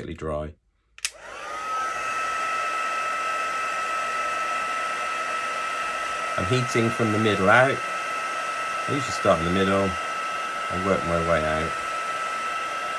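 A heat gun blows with a steady whirring hum.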